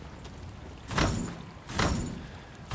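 A metal gate rattles as it is pushed.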